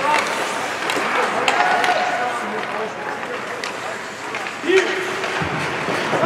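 Skates scrape and carve across ice in a large echoing arena.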